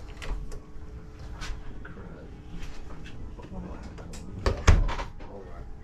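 A cabinet door knocks as a hand swings it.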